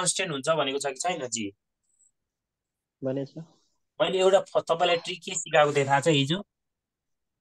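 A man speaks calmly and clearly, close to the microphone, in short bursts with pauses.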